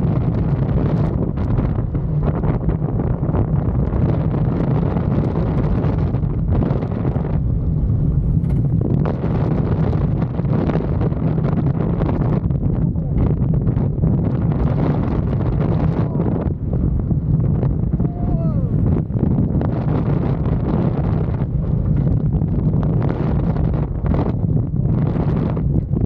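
Wind roars loudly past a microphone.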